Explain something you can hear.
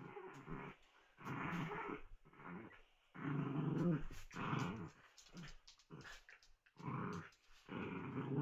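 Small dogs growl and snarl playfully in short bursts, close by.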